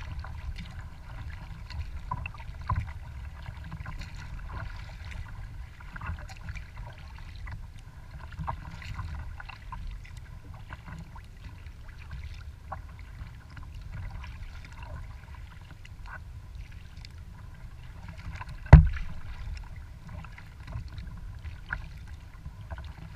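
Small waves lap and splash against the hull of a kayak.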